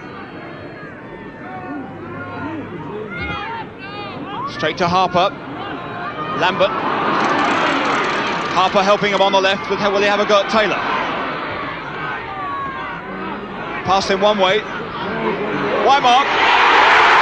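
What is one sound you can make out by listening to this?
A large stadium crowd murmurs and shouts.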